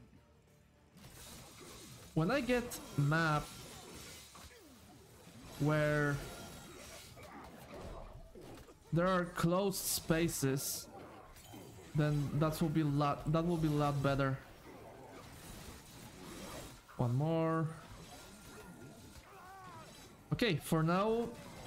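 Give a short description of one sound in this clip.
Video game sound effects clash and whoosh during a fight.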